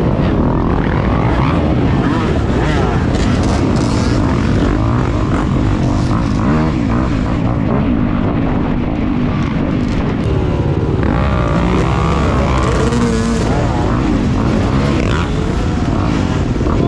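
Other dirt bikes rev nearby.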